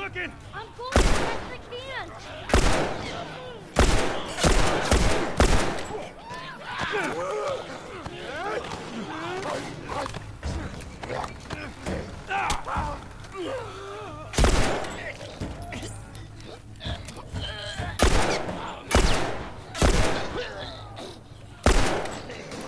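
Gunshots ring out sharply, again and again.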